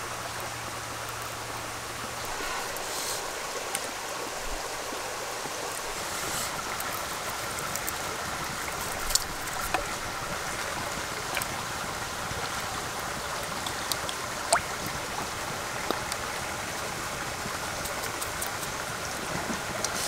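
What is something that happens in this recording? A wood fire crackles and pops close by.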